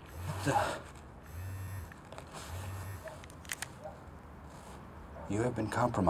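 Phone keys beep as a man dials.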